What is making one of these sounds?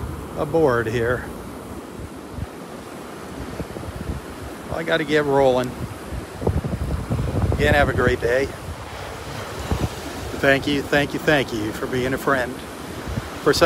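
Waves wash onto the shore.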